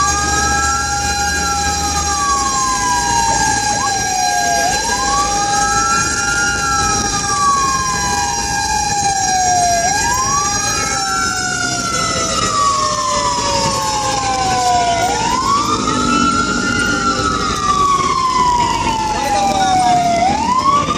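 A vehicle's engine and tyres rumble steadily on the road.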